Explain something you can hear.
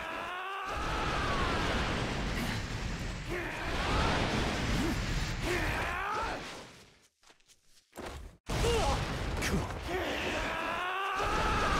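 Energy blasts burst and crackle loudly.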